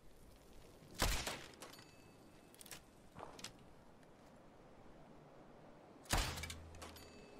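A crossbow fires with a sharp snap.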